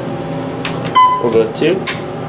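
An elevator button beeps when pressed.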